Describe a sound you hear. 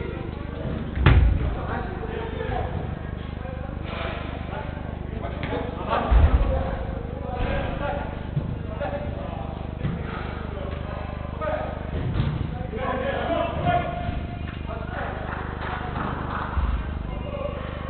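A football thuds as players kick it in a large echoing indoor hall.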